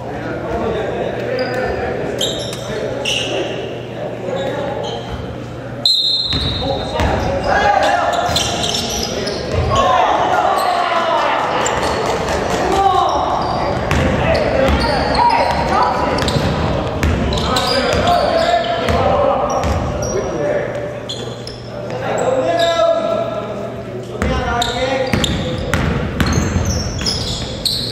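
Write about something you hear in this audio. Young voices shout and call out in a large echoing gym.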